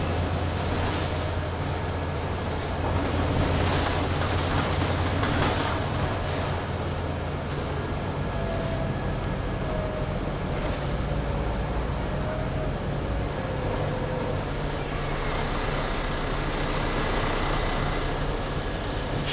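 A bus engine hums and rumbles steadily while the bus rattles along.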